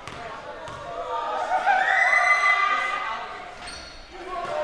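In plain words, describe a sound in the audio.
A crowd of spectators cheers loudly in an echoing gym.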